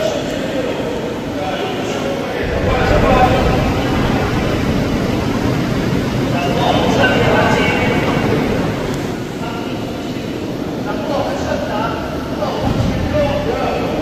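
A crowd of men murmurs and talks in a large echoing hall.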